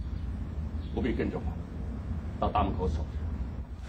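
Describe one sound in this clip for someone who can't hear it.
A man speaks firmly and calmly nearby.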